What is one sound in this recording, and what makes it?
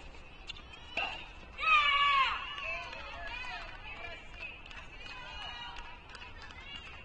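Young women call out across an echoing hall.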